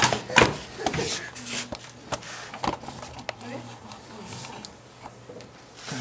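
Paper rustles as a young woman handles sheets.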